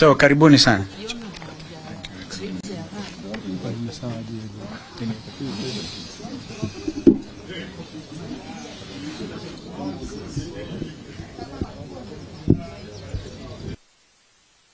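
A crowd of adults murmurs and chatters.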